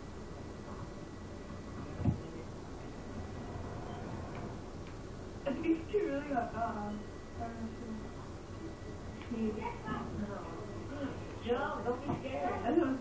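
Video game sounds play from a television.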